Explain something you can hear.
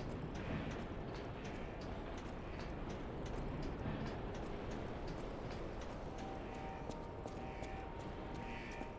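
Footsteps run quickly on a hard surface.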